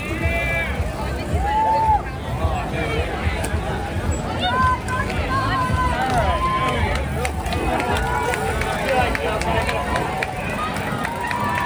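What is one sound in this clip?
A large crowd of men and women chatters and calls out loudly outdoors.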